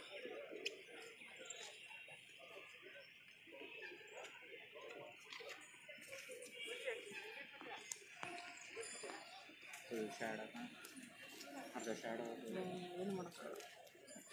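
Men talk and call out nearby outdoors.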